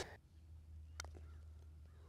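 A golf club taps a ball softly.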